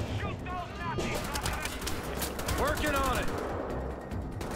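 Automatic guns fire rapidly in a burst.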